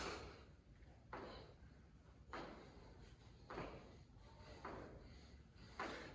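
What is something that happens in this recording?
Sneakers thud and squeak on a hard floor as a man jumps.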